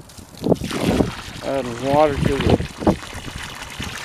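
Water from a hose splashes into a tub of water.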